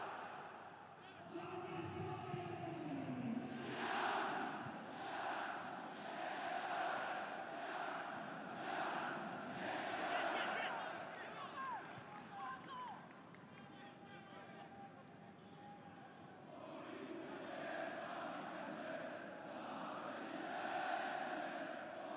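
A large stadium crowd chants and cheers loudly.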